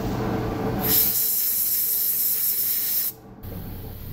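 Compressed air hisses in a loud burst.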